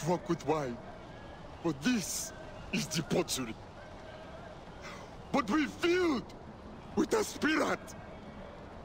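A young man speaks pleadingly and with emotion, close by.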